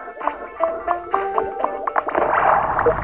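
Game bubbles pop with bright chiming tones.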